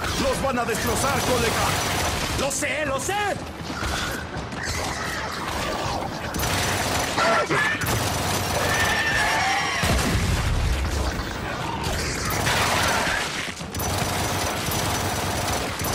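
An energy weapon fires with sharp electric zaps.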